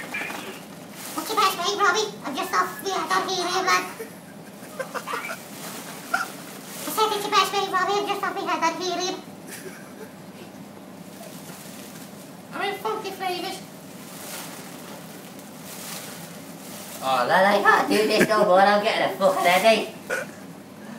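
A young man talks on a phone close by, with pauses between bursts.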